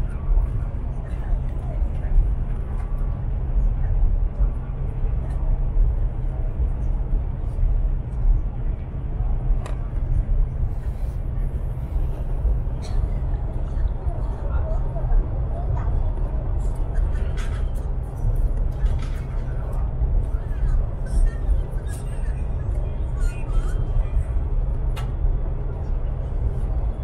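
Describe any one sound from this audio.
Train wheels click and knock on the rails.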